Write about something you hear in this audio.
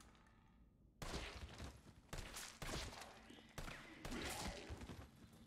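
Rifle shots crack.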